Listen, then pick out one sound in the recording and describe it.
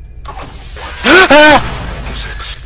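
A young man yells loudly into a microphone.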